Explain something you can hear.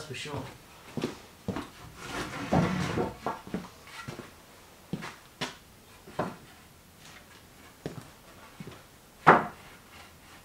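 Wooden boards knock and clatter as they are stacked.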